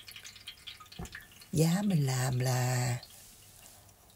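A cloth towel rustles as it is lifted off a pot.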